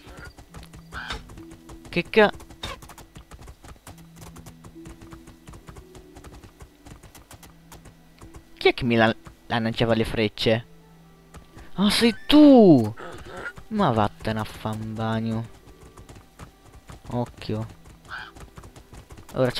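A horse gallops, hooves thudding rapidly on the ground.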